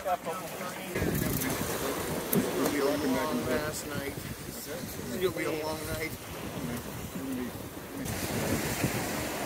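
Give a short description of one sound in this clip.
Water rushes and splashes along a boat's hull.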